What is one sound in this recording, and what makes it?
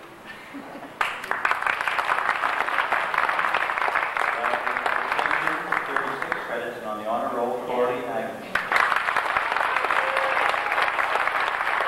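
An audience claps loudly in a large echoing hall.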